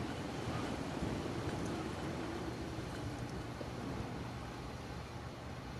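Wind rushes steadily past during a glide.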